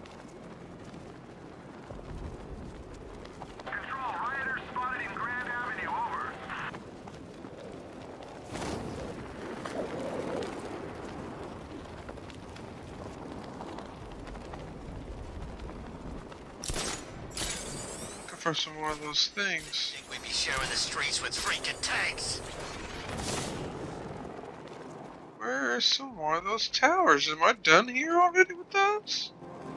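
Wind rushes steadily past a gliding figure.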